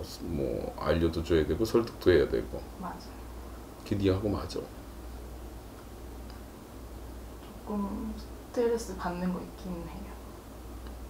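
An elderly man speaks calmly and close by, with pauses.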